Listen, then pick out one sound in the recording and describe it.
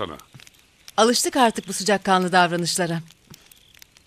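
A young woman speaks firmly, close by.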